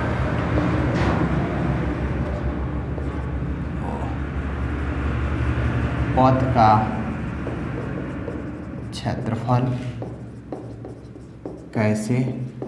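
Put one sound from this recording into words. A marker squeaks and scrapes across a whiteboard.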